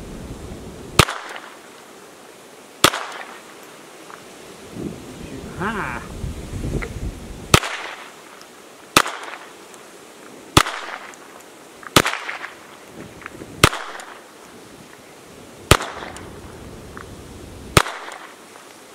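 Pistol shots crack one at a time outdoors, echoing off a nearby bank.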